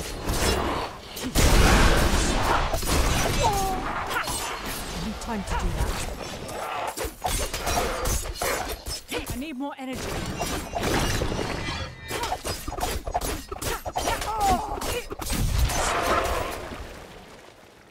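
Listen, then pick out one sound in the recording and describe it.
Weapons clash and slash in a fight.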